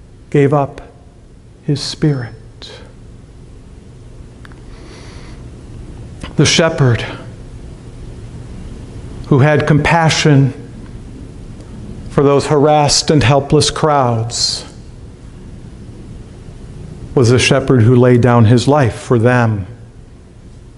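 A middle-aged man speaks slowly and calmly into a microphone, with pauses, in an echoing room.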